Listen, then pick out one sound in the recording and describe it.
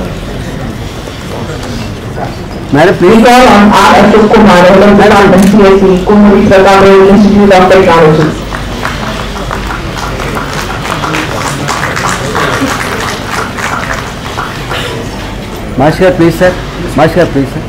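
A small crowd claps steadily in a large hall.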